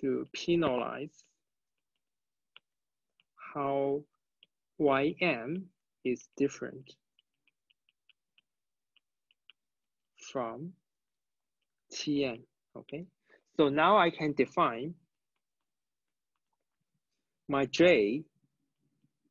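A young man speaks calmly into a close microphone, in short phrases with pauses.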